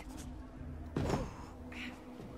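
A body lands with a heavy thump after a jump.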